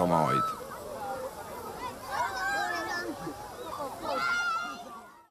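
Children and adults shout and squeal in a lively crowd.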